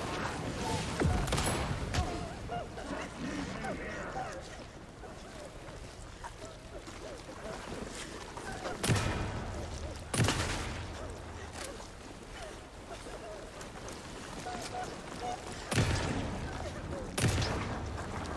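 Gunshots ring out loudly, each echoing briefly.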